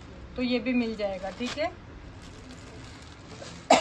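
Fabric rustles as a woman handles a sari.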